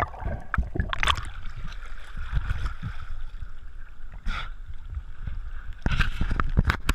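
Water splashes and laps at the surface.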